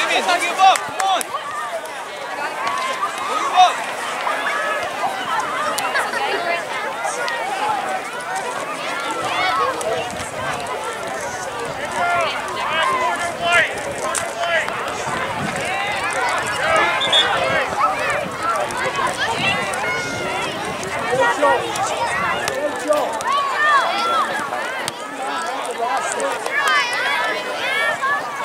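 Children shout and call out across an open playing field.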